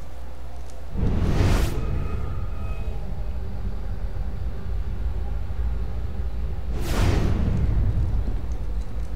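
A deep whooshing sound swells and fades.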